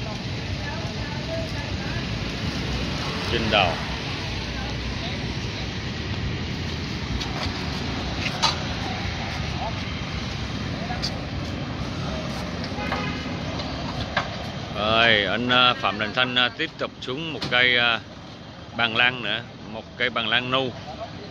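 A truck engine idles nearby with a low rumble.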